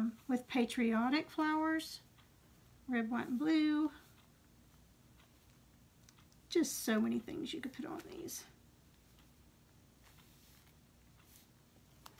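A small brush taps and strokes softly on paper.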